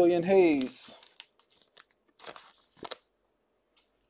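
Trading cards rustle and flick as a hand handles them.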